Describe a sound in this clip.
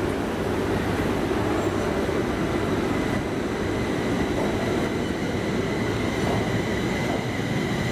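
An electric train rumbles and hums as it pulls slowly away.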